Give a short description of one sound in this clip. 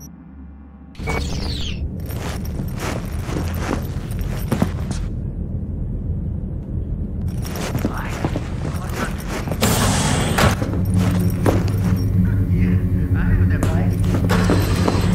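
A low electronic hum fills an indoor space.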